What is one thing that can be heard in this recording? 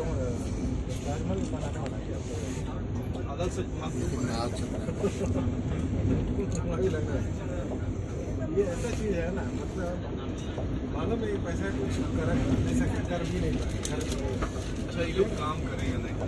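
A train rattles and clanks over a steel bridge.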